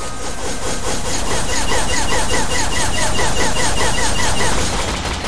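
A blade swishes through the air in quick repeated strokes.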